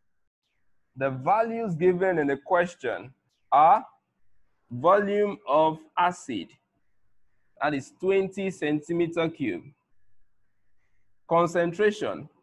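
A man speaks calmly and clearly close to a microphone, in short phrases.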